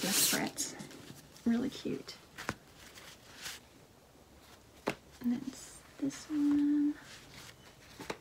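Wrapping paper crinkles and rustles in a woman's hands.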